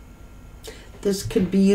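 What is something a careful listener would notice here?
A middle-aged woman speaks close to a microphone.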